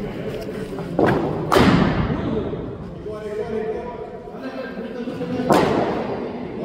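A cricket bat cracks sharply against a ball.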